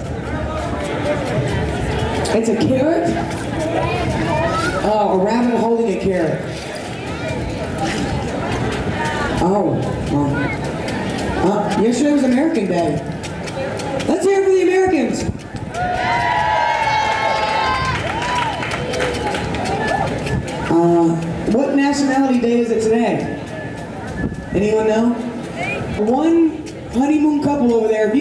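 Water splashes steadily from a fountain nearby.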